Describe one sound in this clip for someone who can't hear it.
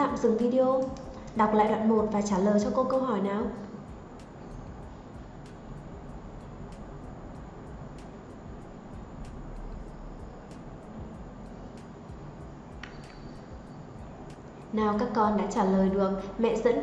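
A young woman reads out clearly and calmly, close to a microphone.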